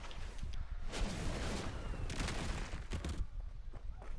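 A video game explosion bursts with a rushing roar.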